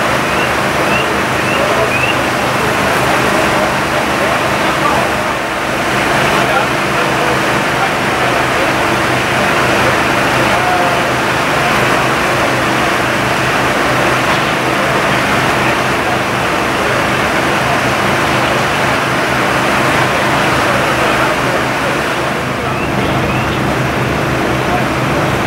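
A fire hose sprays water onto a roof with a steady, loud hiss.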